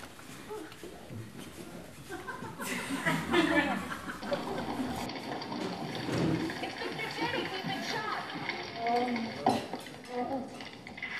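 A woman speaks with animation, heard in a room with some echo.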